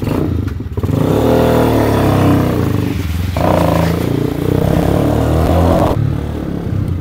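A motorcycle engine revs up as the motorcycle pulls away.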